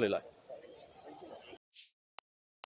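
A man speaks briefly up close.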